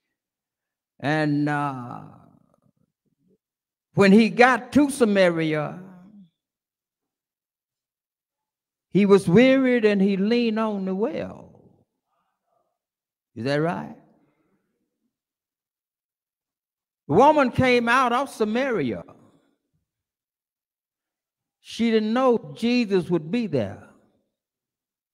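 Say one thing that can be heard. An elderly man preaches through a microphone in short, emphatic phrases with pauses between them, in a reverberant hall.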